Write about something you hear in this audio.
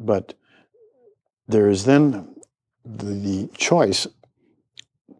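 An elderly man speaks calmly and earnestly, close by.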